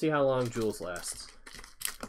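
A foil wrapper crinkles as hands open it.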